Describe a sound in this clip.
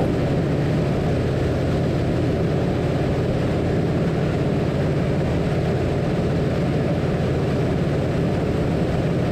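Wind rushes past an open cockpit.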